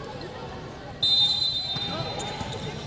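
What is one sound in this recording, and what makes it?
A referee blows a sharp whistle.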